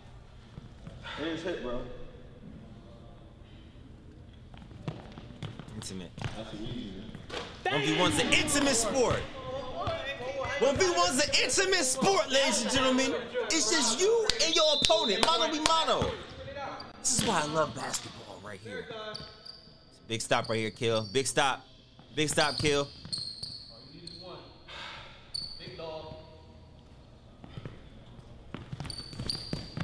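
A basketball bounces on a wooden court floor.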